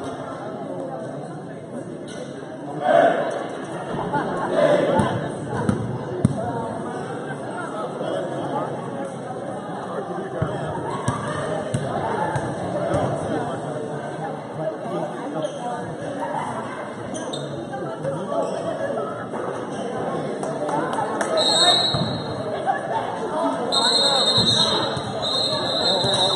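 A crowd of spectators chatters throughout a large echoing gym.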